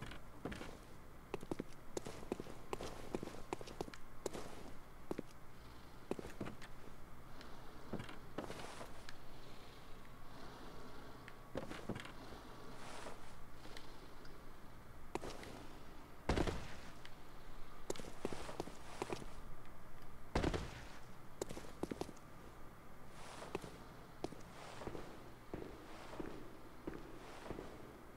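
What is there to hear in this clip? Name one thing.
Footsteps thud and scrape on rooftops and wooden planks.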